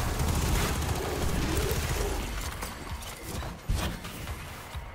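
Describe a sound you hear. Rapid gunfire and explosions blast up close.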